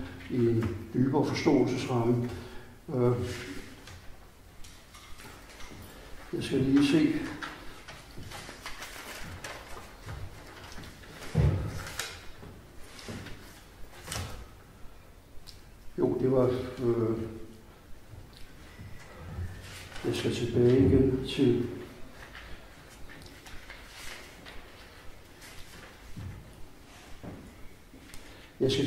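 An elderly man reads aloud slowly into a microphone, with long pauses.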